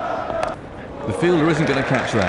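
A bat strikes a cricket ball with a sharp knock.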